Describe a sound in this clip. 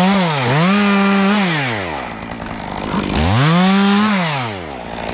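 A chainsaw engine revs up and down loudly close by.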